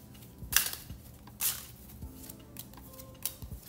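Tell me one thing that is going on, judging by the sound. A card slides and slaps down onto a wooden table.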